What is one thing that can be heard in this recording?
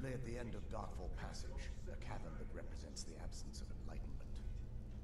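A man's voice speaks calmly in a game.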